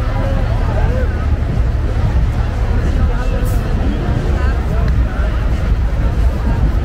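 A fire engine's motor rumbles as it slowly rolls along.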